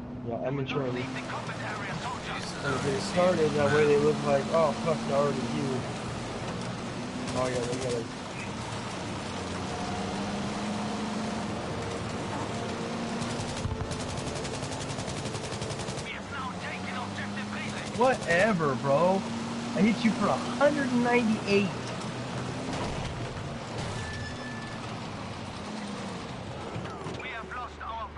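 Tyres rumble over rough dirt.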